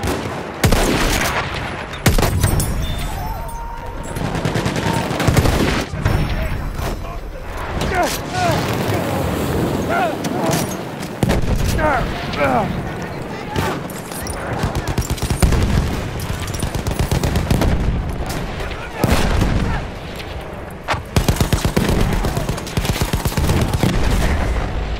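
Gunshots crack repeatedly, some in rapid bursts.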